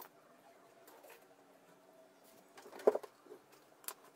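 Paper rustles as it is picked up.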